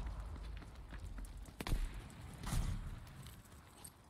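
Explosions rumble and boom nearby.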